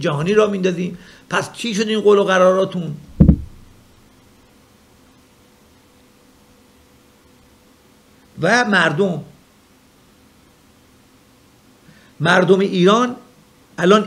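A middle-aged man speaks with animation into a nearby microphone, pausing now and then.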